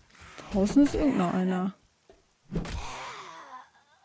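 A club strikes a body with heavy thuds.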